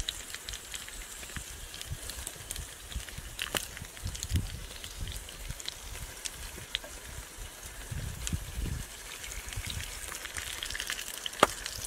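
A metal spatula scrapes and taps against a pan.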